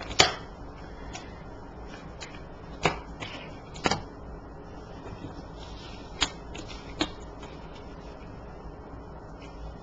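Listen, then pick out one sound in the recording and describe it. Cards are laid down and slide softly on a cloth.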